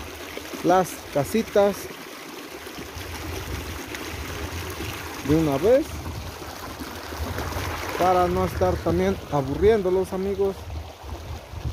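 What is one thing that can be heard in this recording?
Shallow water trickles over stones in a stream.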